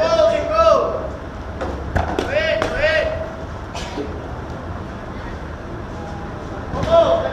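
Children shout and call out while playing ball.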